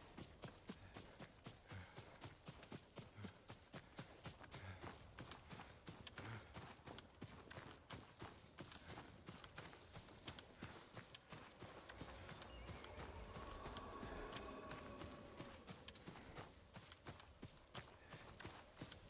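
Wind blows across open ground.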